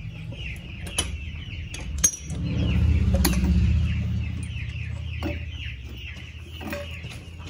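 Metal tools clink and knock now and then.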